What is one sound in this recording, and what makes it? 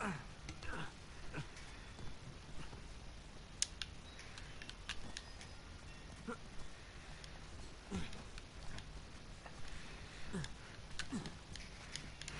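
A man grunts with effort while climbing.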